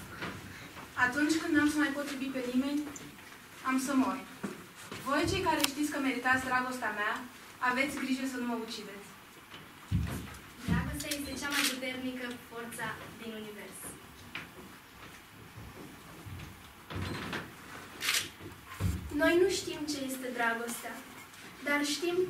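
A young woman recites in a clear, raised voice.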